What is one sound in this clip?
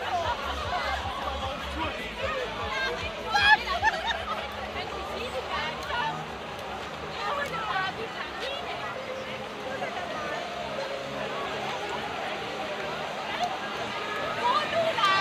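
Children shout and laugh excitedly.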